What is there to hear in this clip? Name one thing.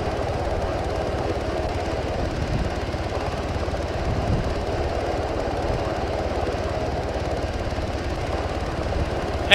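A helicopter's rotor thumps steadily nearby.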